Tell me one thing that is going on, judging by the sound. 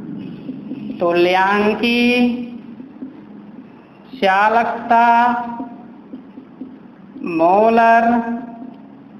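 A man speaks in drawn-out, chanting phrases close by, with pauses between them.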